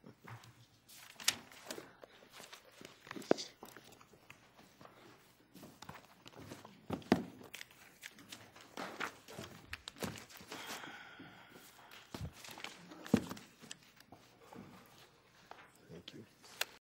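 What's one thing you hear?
People shuffle and move about with soft knocks and rustling.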